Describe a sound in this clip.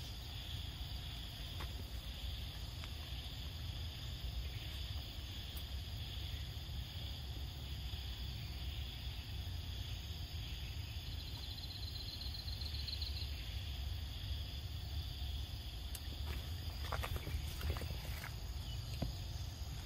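A monkey chews and bites into soft fruit close by.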